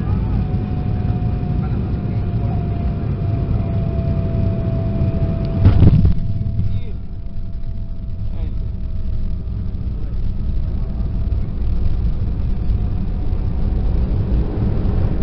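Jet engines roar steadily, heard from inside an airplane cabin.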